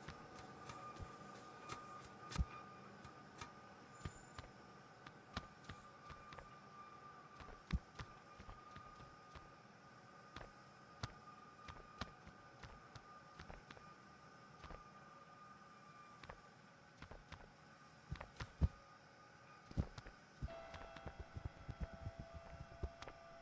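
Footsteps of a game character patter on a hard floor.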